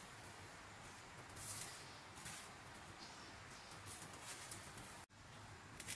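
Seasoning is sprinkled and shaken from a small jar.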